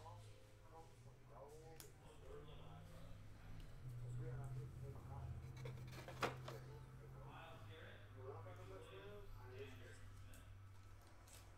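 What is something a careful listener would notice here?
Trading cards rustle and tap as they are handled.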